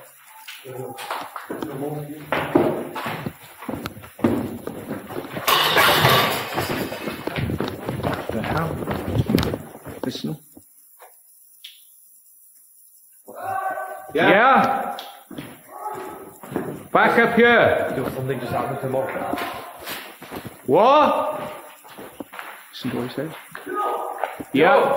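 A young man talks with animation close by, his voice echoing in a large hollow space.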